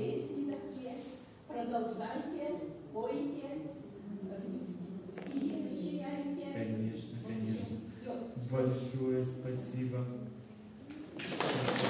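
An elderly woman talks close by.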